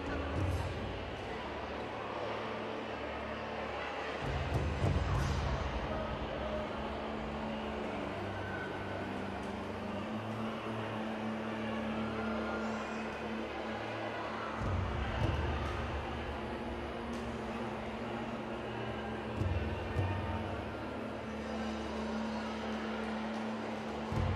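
Young children chatter and murmur in a large echoing hall.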